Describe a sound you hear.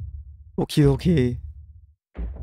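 A young man speaks briefly and with animation into a microphone.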